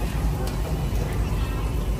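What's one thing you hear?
Food sizzles on a hot grill.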